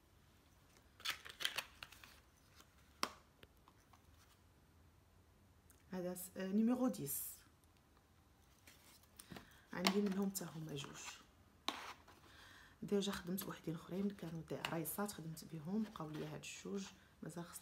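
Plastic packaging crinkles and taps in a woman's hands.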